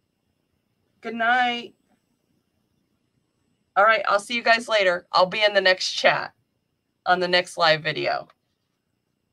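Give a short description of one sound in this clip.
A woman talks with animation into a close microphone, in short bursts.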